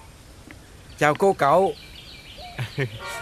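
An elderly man speaks warmly.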